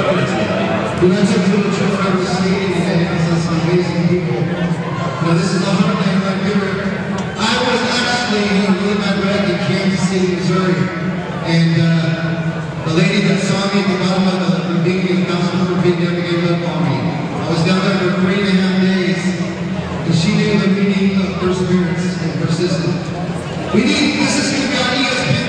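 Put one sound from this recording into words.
An elderly woman sings through a microphone and loudspeakers in a large echoing hall.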